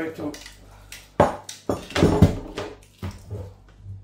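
A plastic device is set down on a wooden table with a knock.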